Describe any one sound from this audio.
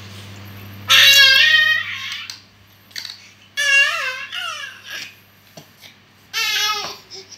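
A baby coos and squeals up close.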